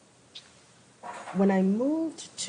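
A woman speaks into a microphone in a room.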